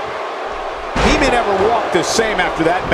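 A heavy body slams down onto a wrestling mat with a thud.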